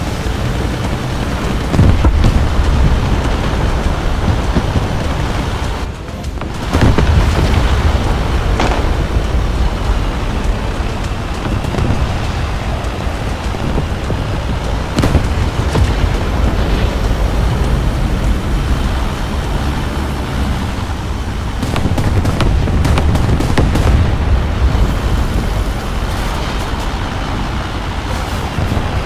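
Tank tracks clatter over the ground.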